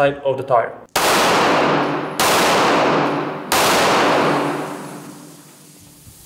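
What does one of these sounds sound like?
A pistol fires three loud shots that ring out and echo outdoors.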